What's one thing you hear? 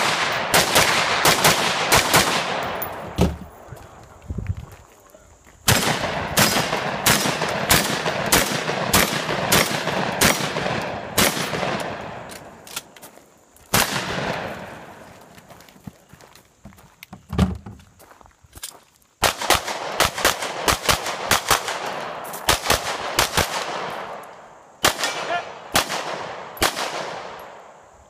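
Gunshots crack in quick succession outdoors, echoing across open ground.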